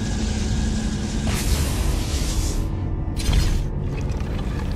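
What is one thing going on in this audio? Fire beams roar and crackle in bursts.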